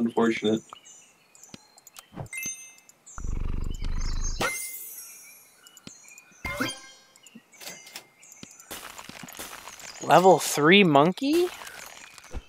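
Short bright game chimes and pops sound.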